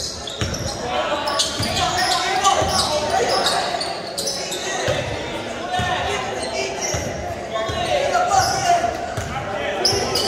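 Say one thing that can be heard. Young players call out to each other in a large echoing gym.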